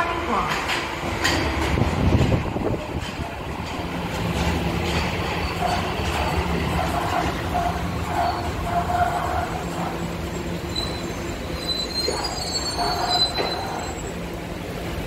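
A subway train rumbles into the station and brakes to a stop.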